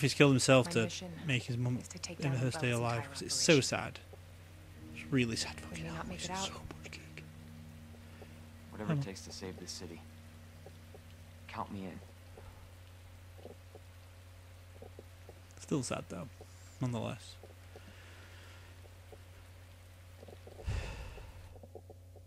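A young man talks into a close microphone, in short bursts.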